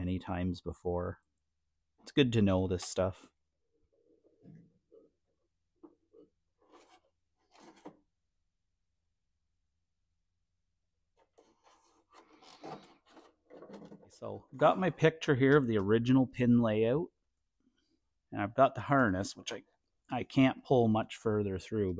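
A man talks calmly, close by, in short bursts with pauses.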